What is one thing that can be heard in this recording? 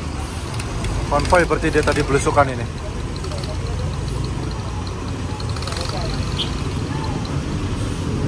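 Motorcycle engines putter past.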